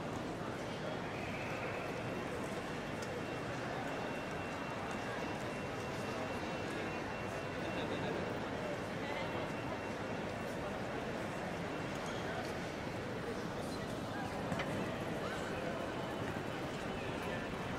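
A crowd murmurs steadily in a large, echoing hall.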